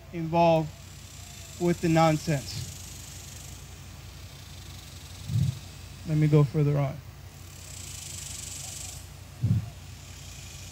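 A man speaks slowly into a microphone outdoors, with pauses between phrases.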